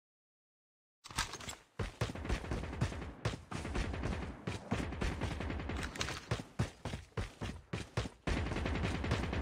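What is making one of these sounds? Footsteps crunch quickly on dry ground.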